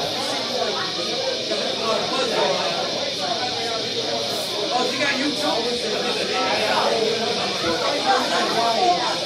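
Electric guitars play through amplifiers.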